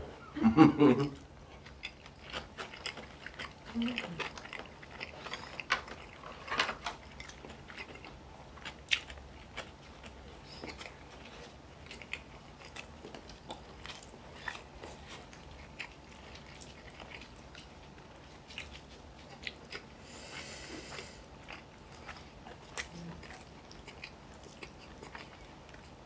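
A woman chews food noisily close to a microphone.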